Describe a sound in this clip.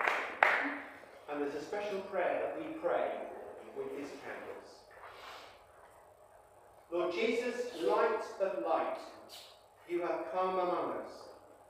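An elderly man speaks clearly through a microphone.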